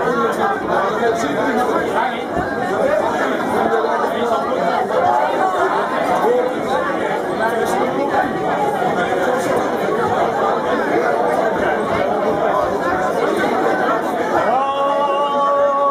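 A crowd of people talks and cheers nearby.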